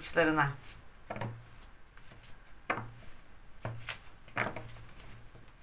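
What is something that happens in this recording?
Cards shuffle and tap against each other.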